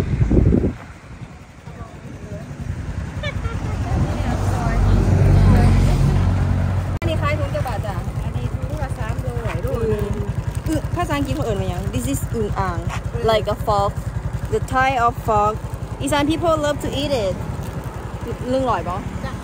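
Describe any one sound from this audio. A motor scooter engine idles with a steady low rumble.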